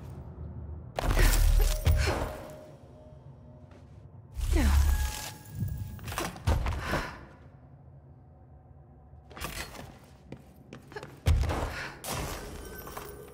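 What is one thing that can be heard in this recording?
Heavy thuds and whooshes sound as a figure leaps and lands on rock.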